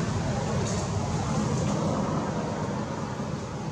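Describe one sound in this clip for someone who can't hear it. A baby monkey gnaws on a thin tree stem.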